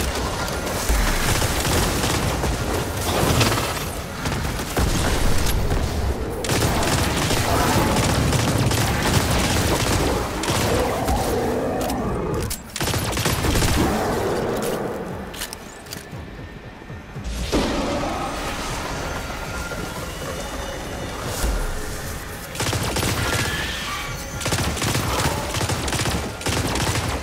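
Energy blasts crackle and explode.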